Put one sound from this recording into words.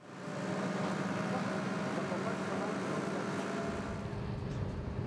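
A crane engine hums steadily.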